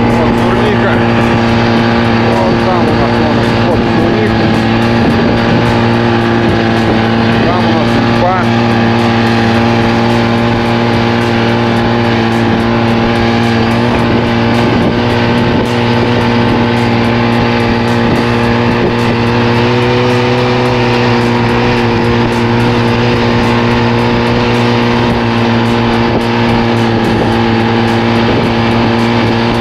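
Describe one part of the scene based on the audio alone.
A snowmobile engine drones steadily close by.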